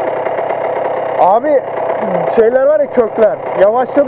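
A man talks loudly over the engines.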